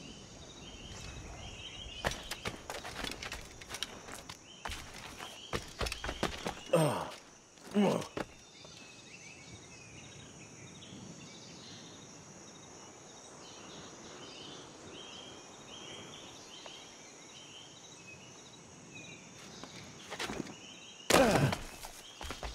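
Footsteps scuff and tap quickly on stone.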